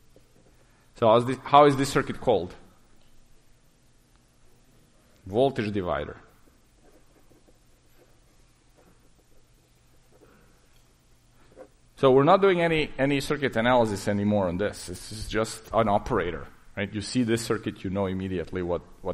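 A man lectures through a microphone, pausing between phrases.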